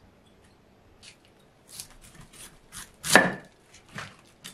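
A knife crunches through crisp cabbage leaves and thuds on a wooden board.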